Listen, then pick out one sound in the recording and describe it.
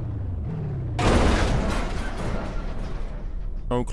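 A car crashes into a trailer with a loud crunch of metal.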